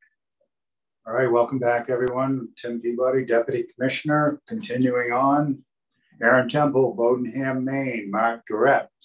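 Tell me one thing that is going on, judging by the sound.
An elderly man speaks calmly into a microphone, heard through an online call.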